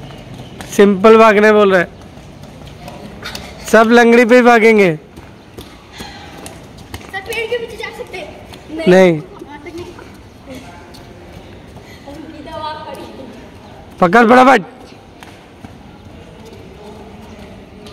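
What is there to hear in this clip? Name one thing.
Children's bare feet patter on paving as they run.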